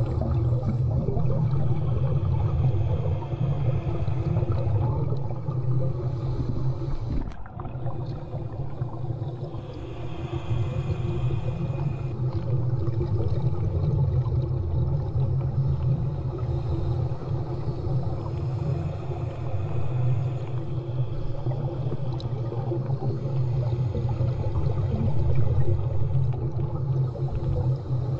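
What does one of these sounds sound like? A woman breathes heavily through a snorkel close by.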